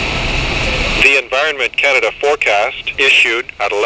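An automated voice speaks through a small radio speaker.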